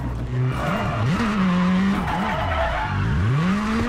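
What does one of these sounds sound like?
Tyres skid and crunch on gravel.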